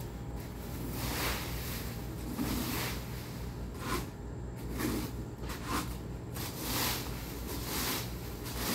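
A rake scrapes and rustles through dry leaves in short, repeated strokes.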